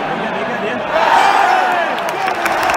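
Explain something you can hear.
A stadium crowd roars louder for a moment.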